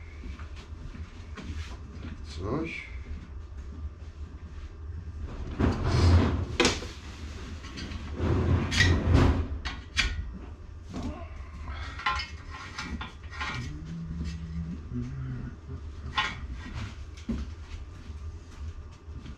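A metal bar scrapes and clatters in a vise.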